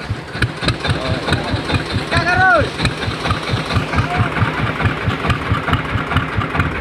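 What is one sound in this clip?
A boat engine chugs with a fast, steady beat.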